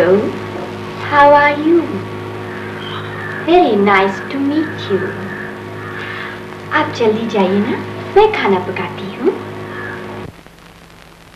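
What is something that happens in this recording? A young woman sings softly and sweetly.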